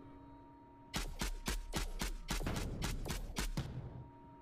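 A game turret fires in rapid bursts.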